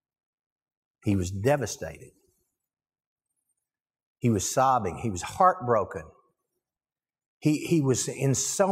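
A middle-aged man speaks calmly through a lapel microphone, pausing between phrases.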